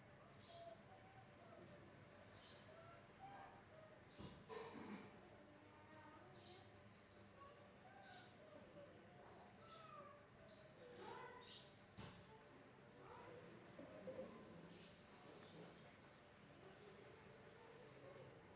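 Hands softly rub and press skin.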